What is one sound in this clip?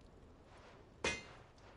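A hammer strikes metal on an anvil with a sharp ringing clang.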